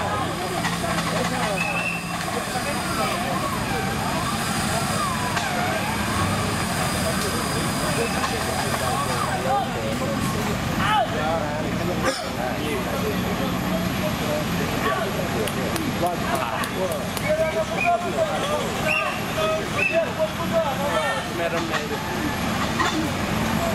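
An off-road vehicle's engine rumbles and revs.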